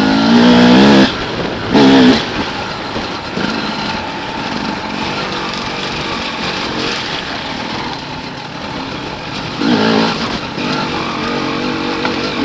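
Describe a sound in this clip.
A motorbike engine drones close by and revs up in short bursts.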